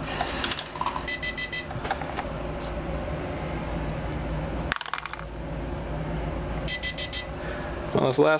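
An electronic device beeps in short rapid bursts.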